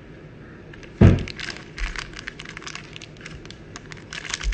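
A plastic foil pack crinkles and rustles as it is handled.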